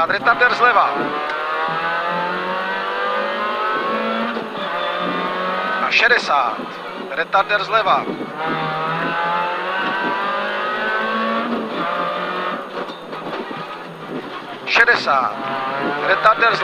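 A rally car engine revs hard, rising and falling in pitch as gears change.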